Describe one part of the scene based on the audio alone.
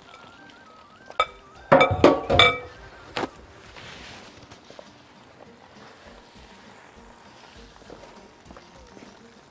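A thick sauce simmers and bubbles gently in a pan.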